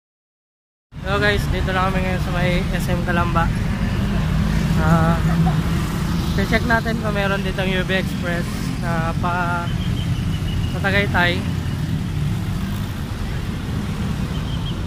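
Traffic rumbles steadily outdoors.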